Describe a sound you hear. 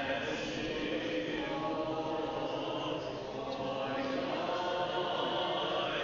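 A congregation of men and women sings together in a large echoing hall.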